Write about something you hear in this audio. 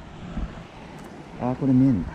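Water trickles over rocks in a shallow stream.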